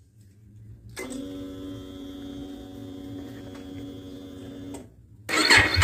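A motorcycle starter motor whines steadily up close.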